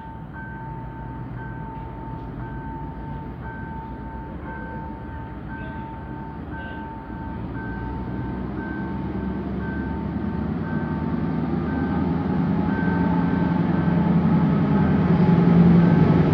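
A train approaches with a low rumble that grows steadily louder.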